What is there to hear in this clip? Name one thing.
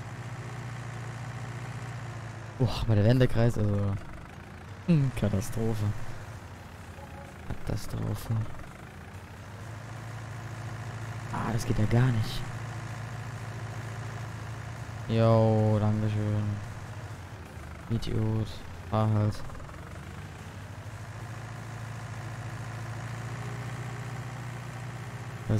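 A tractor engine hums steadily at low revs.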